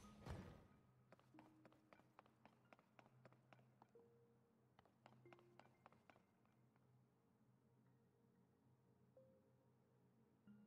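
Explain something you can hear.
Footsteps patter quickly across a hard stone floor.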